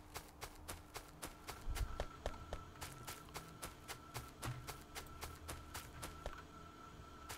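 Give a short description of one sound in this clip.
Footsteps crunch quickly and steadily on dirt.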